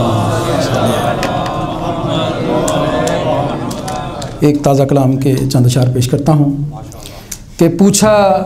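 A middle-aged man speaks with feeling into a microphone.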